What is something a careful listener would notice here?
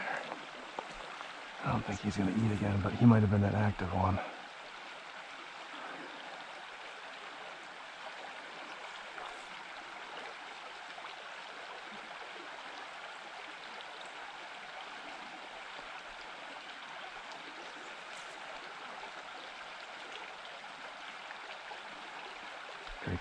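A stream trickles softly outdoors.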